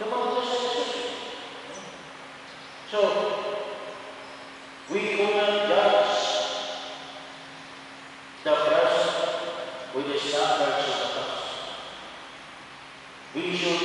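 A middle-aged man speaks slowly through a microphone, echoing in a large hall.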